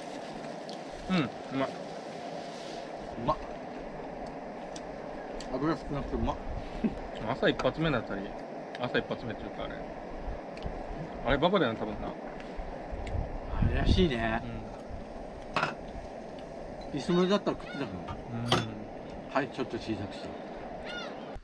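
A second adult man answers casually nearby.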